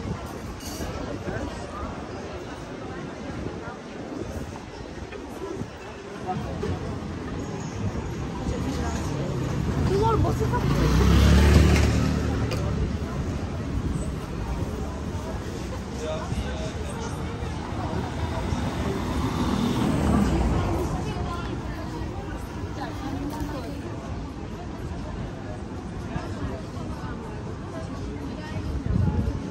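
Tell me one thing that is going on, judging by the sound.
A crowd murmurs with footsteps along a busy street outdoors.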